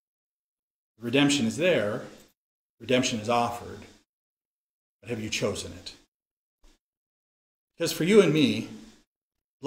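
A middle-aged man speaks calmly and expressively into a close microphone, in short phrases with pauses.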